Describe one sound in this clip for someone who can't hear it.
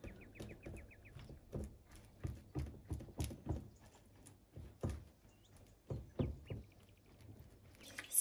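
A plastic spatula scrapes and taps against a glass dish.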